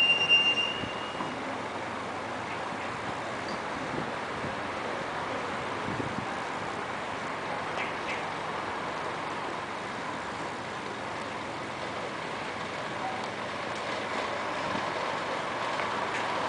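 Street traffic hums steadily in the open air.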